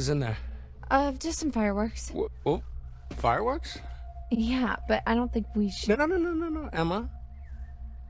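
A young woman answers softly and hesitantly nearby.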